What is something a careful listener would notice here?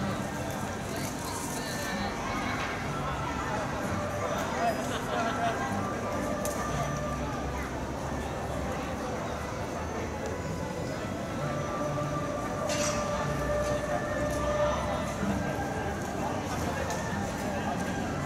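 Children and adults chatter in a large echoing hall.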